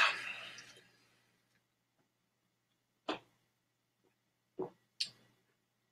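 A man gulps a drink from a can.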